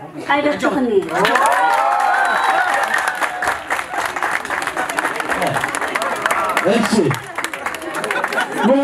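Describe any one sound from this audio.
A crowd claps and cheers loudly in a large room.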